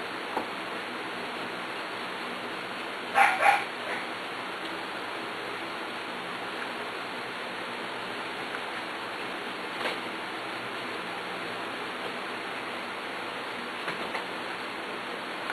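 Puppies shuffle and rustle on soft bedding.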